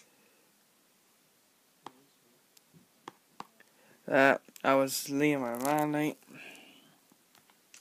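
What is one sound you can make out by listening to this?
A finger taps lightly on a touchscreen.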